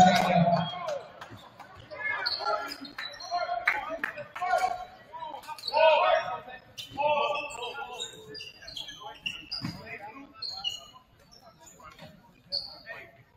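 Young men and coaches talk and call out in a large echoing gym.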